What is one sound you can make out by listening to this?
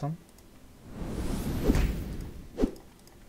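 A short whoosh sounds as a game piece moves.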